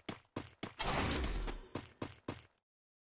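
A chiming pickup sound rings out briefly.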